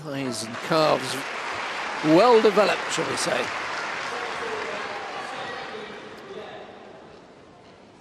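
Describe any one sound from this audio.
A crowd murmurs and cheers in a large echoing hall, then fades.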